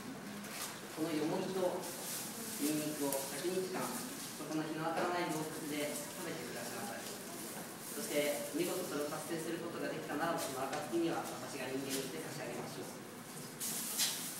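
Leaves rustle as a man shakes a bundle of long leaves.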